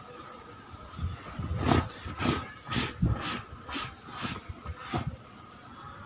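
A cloth scrubs a leather seat in quick, repeated strokes.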